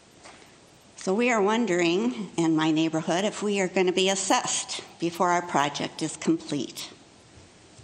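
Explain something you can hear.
An elderly woman speaks calmly into a microphone in a large room.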